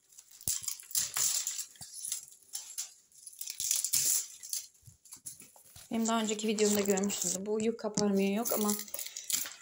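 A hand brushes and rustles stiff plant leaves.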